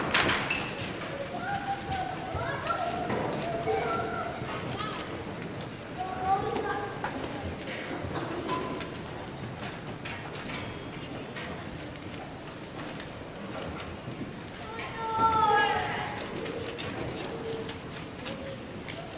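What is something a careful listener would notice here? A woman speaks calmly to an audience in a large echoing hall.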